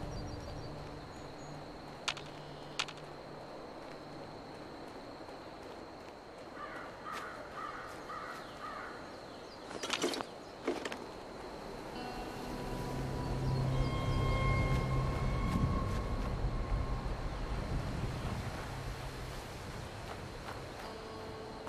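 Footsteps walk over paving and dry leaves.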